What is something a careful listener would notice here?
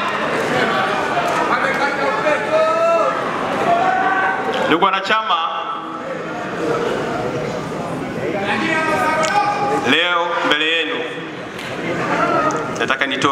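A large crowd sings and chants loudly in an echoing hall.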